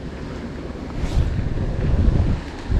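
A fishing rod swishes through the air in a cast.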